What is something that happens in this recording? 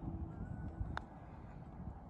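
A putter taps a golf ball with a light click.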